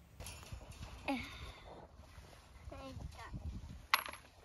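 A toddler babbles close by.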